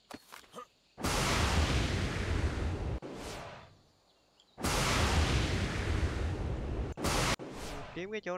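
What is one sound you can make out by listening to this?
Wind rushes loudly past, as if falling through the air.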